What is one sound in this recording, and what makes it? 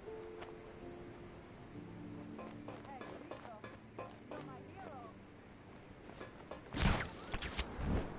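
Footsteps clang on a metal walkway.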